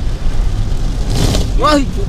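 A passing car's tyres hiss on the wet road.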